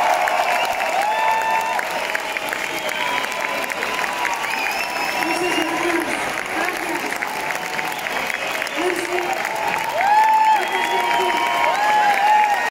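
A live band plays loudly in a large hall.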